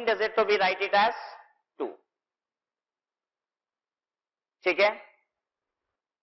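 A man speaks through a clip-on microphone in short bursts, explaining in a teaching tone.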